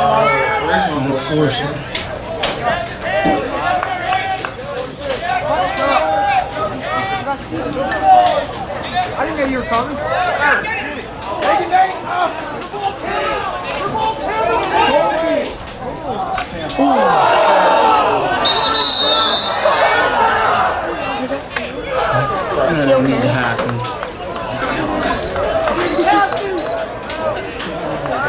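A crowd of spectators cheers and shouts from the sidelines outdoors.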